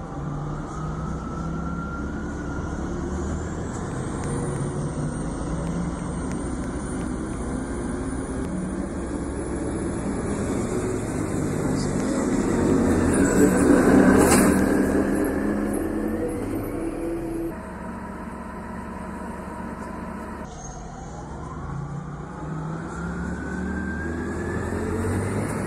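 A bus engine hums and rises in pitch as the bus pulls away.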